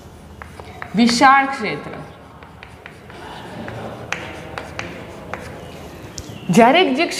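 A young woman speaks nearby in a clear, teaching voice.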